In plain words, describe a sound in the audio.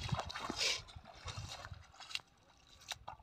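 Water splashes as a person wades out of a river.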